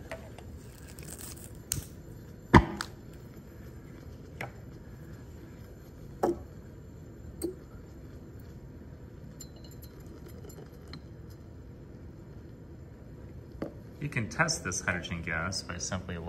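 Liquid fizzes and bubbles softly.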